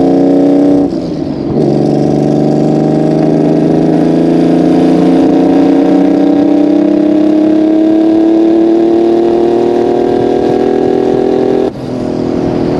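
A car engine revs hard and climbs in pitch as the car accelerates.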